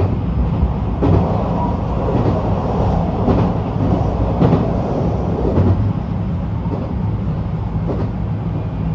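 A vehicle rumbles steadily along a road, heard from inside.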